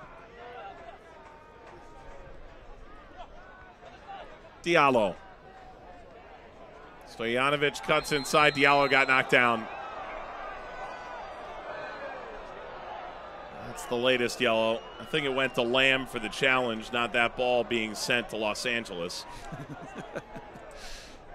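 A crowd murmurs and cheers in an open stadium.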